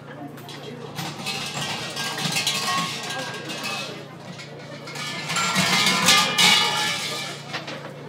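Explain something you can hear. Wind gusts outdoors.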